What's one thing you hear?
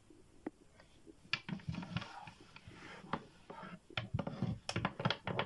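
Plastic toy figures knock and clack together.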